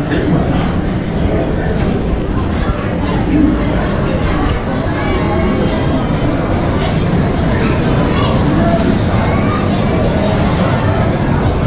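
Ride cars rumble slowly along a track.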